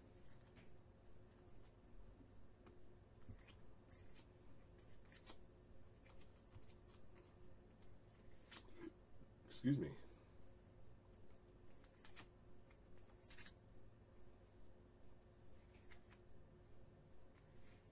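Trading cards slide and flick against each other in a person's hands.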